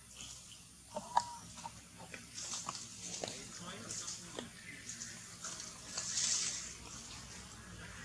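Leaves rustle as a monkey moves through leafy branches.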